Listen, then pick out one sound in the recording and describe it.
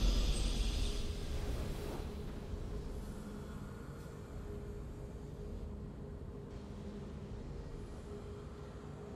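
A triumphant victory fanfare plays from a game and slowly fades.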